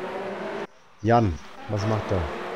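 A car engine roars past close by.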